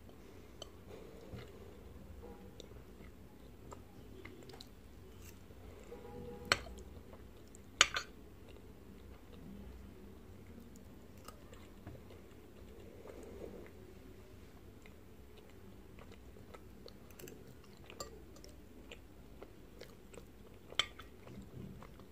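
A fork clinks against a glass dish.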